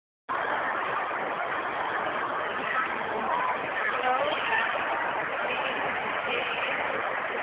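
A crowd of voices murmurs in a large, echoing hall.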